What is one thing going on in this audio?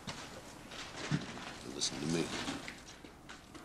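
A middle-aged man speaks in a low, calm voice close by.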